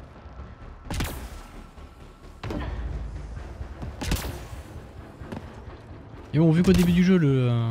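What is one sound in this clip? A jet pack bursts with short whooshes.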